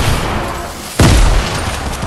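A loud blast booms and rumbles.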